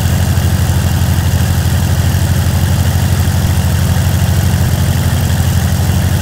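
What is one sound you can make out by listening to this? A tractor engine chugs steadily at low revs.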